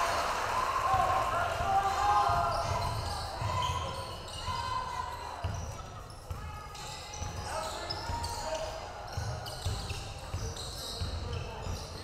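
A basketball thumps as it is dribbled on the floor.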